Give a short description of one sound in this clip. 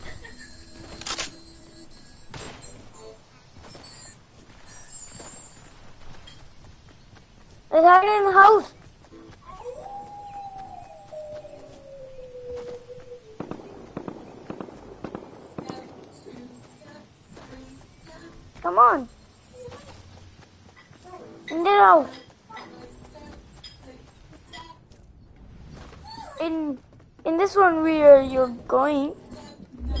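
Footsteps patter quickly on grass and pavement.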